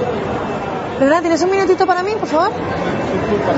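A woman speaks loudly with animation.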